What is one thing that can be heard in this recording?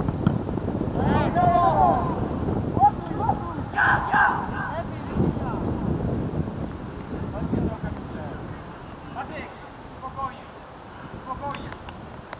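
Young boys shout to each other across an open field.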